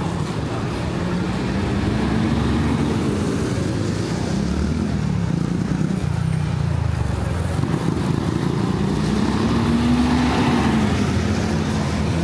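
A bus engine rumbles and whines as the bus drives past.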